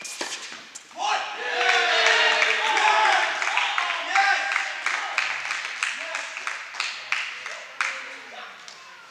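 A crowd of young people cheers loudly in an echoing hall.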